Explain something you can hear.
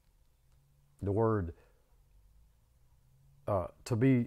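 An older man speaks calmly and close by, in short phrases.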